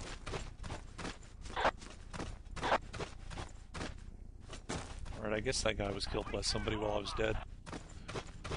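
Footsteps crunch on sand at a steady walking pace.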